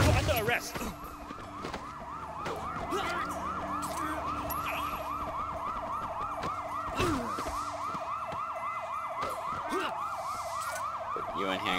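Punches thud during a scuffle.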